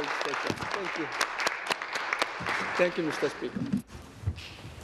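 A man speaks with animation into a microphone in a large hall.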